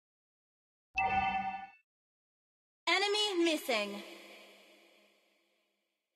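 A game alert chime rings twice.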